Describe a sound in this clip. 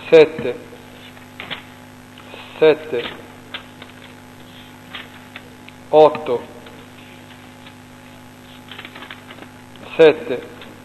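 Papers rustle and shuffle.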